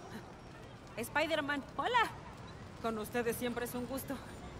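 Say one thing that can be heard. A young woman speaks with animation.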